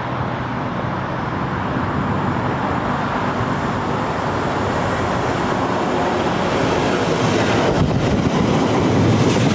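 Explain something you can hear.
A diesel locomotive engine rumbles as it approaches and passes close by.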